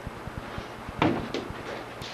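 A man strikes a padded shield with a dull thump.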